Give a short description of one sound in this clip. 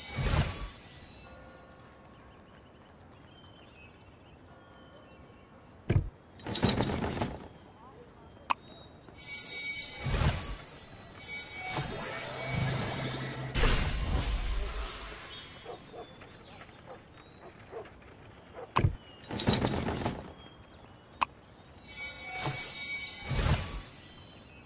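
Cards flip and whoosh in bursts with bright magical chimes.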